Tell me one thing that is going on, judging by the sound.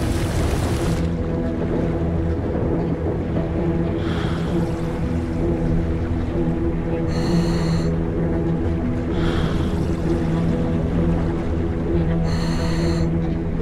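Water bubbles and churns, heard muffled from below the surface.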